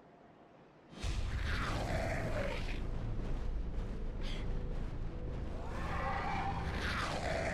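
A large winged creature shrieks and roars loudly.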